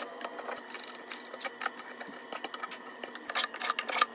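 A wood chisel pares the corner of a hardwood box.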